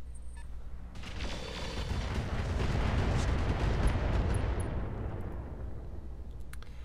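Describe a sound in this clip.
An explosion booms and rumbles, then slowly fades.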